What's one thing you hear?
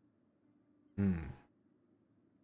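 A man gives a short, loud exclamation close to a microphone.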